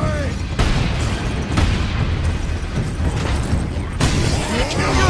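Heavy gunfire booms in bursts.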